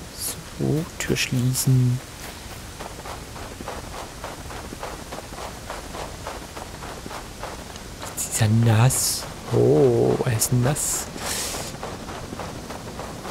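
Footsteps crunch steadily through snow.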